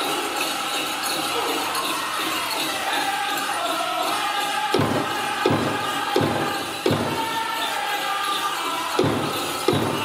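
Bells on dancers' ankles jingle with their steps.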